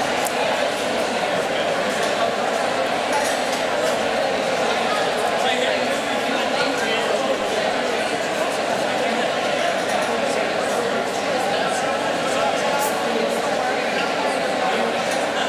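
A large crowd murmurs and chatters in an echoing hall.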